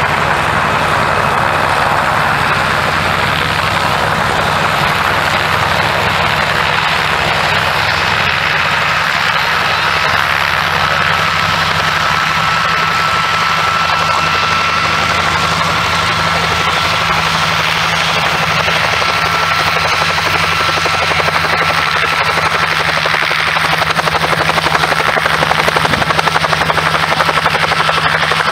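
A propeller plane's engine drones loudly and steadily close by.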